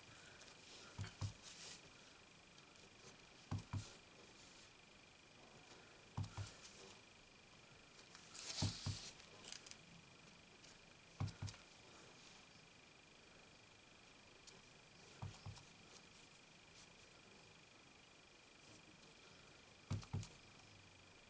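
A stamp block taps down onto paper and an ink pad with soft knocks.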